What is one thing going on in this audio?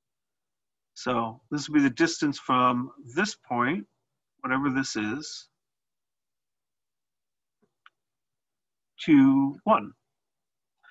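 A man speaks calmly into a close microphone, explaining in short phrases.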